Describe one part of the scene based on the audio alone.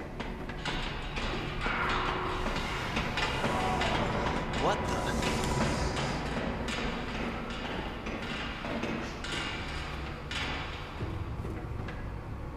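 Steam hisses steadily.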